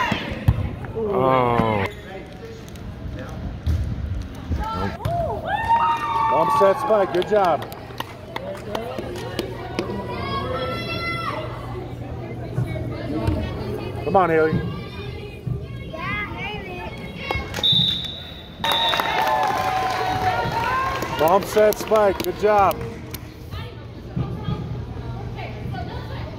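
Girls shout and call out in a large echoing gym.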